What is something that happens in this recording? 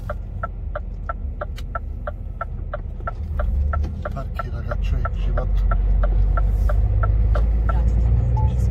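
A turn signal ticks rapidly inside the cab.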